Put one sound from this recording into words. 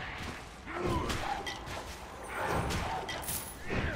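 Blows land with sharp thuds in a fight.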